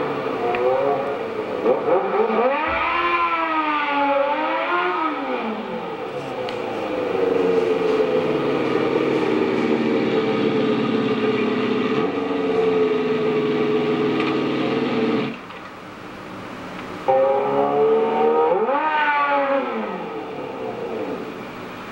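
A motorcycle engine revs up and down loudly.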